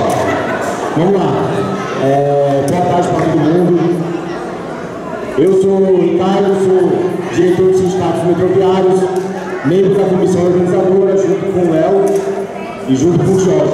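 A young man speaks loudly into a microphone over loudspeakers, echoing in the hall.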